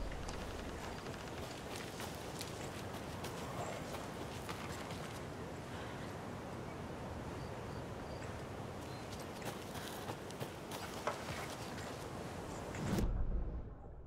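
Footsteps crunch softly over leaves and undergrowth.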